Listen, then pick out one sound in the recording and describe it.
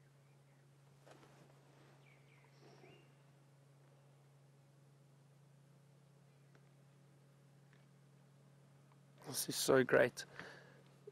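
A lion tears and chews at a carcass close by.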